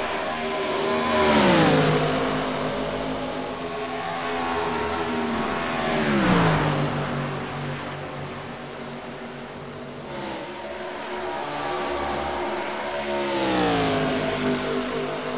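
Race cars zoom past close by, their engine pitch dropping as they go.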